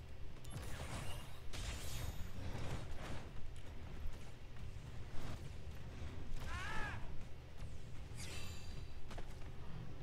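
A sword slashes and clangs.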